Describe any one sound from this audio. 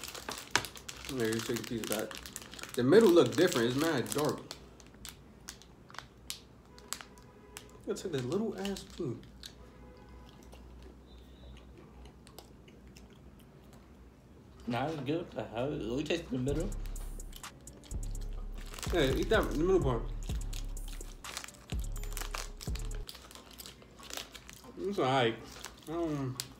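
Paper food wrappers rustle and crinkle.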